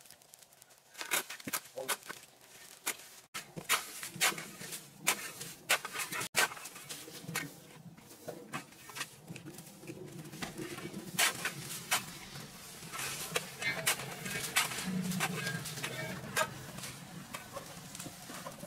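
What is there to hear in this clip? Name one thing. A shovel scrapes and scratches through dry leaves and soil.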